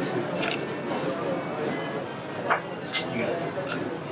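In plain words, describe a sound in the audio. Liquid pours into a glass.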